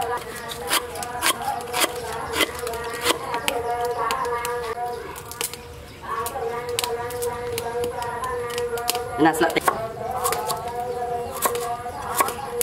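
A knife chops through ginger.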